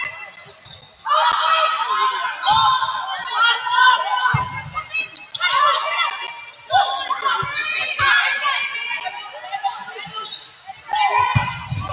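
Young women players call out to each other.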